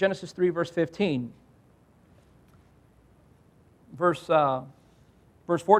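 A man speaks into a microphone in short phrases, with pauses.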